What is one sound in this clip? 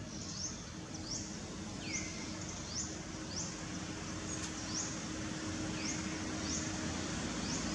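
Leaves rustle softly as a monkey shifts on a branch.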